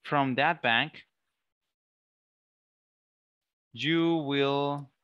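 A man reads out slowly, heard through an online call.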